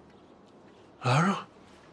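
An elderly man speaks out sharply.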